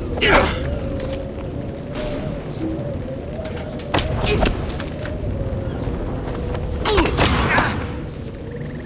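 Sword blows clash and strike during a fight.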